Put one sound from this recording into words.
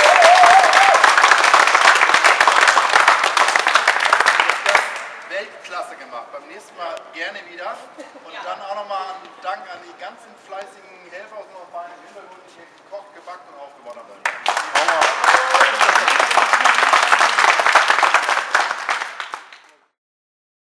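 A group of people clap loudly in an echoing hall.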